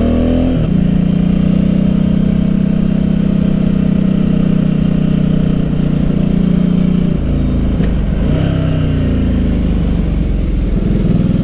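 A motorcycle engine drones steadily up close, its pitch shifting as the rider changes speed.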